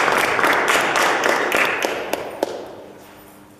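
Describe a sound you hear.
High heels click on a wooden floor.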